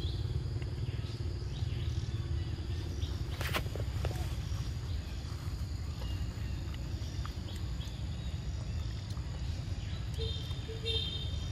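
A monkey bites and chews juicy fruit up close.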